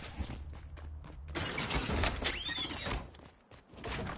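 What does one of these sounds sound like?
Wooden building pieces clatter into place in a game.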